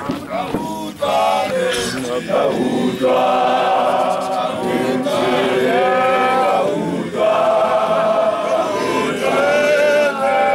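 A group of men sing together loudly outdoors.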